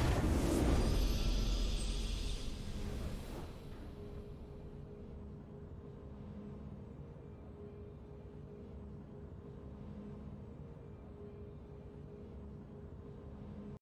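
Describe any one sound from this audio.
A triumphant game fanfare swells loudly, then fades into soft, steady music.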